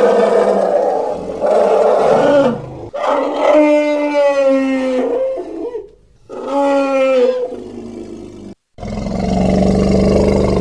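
A large beast lets out loud, drawn-out roars and screeches.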